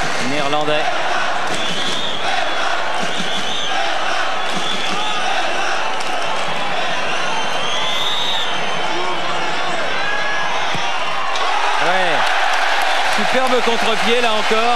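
A large crowd cheers and chants loudly in an open stadium.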